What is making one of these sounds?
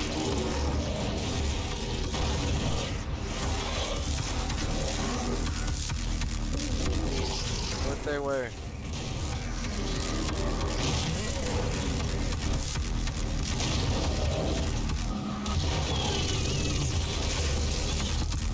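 Guns fire rapidly in a game.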